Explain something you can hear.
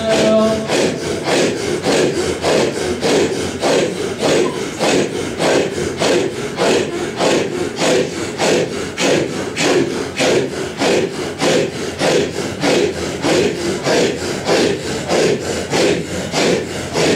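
A large group of men chant together in a fast, steady rhythm of loud, breathy bursts.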